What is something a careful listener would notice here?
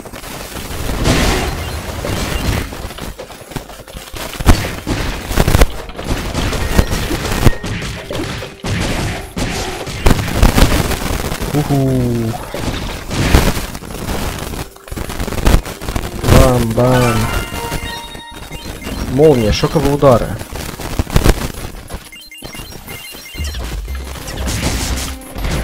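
Gunshots and blasts go off in quick bursts.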